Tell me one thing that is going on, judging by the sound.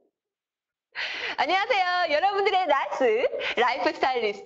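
A young woman speaks with animation into a clip-on microphone.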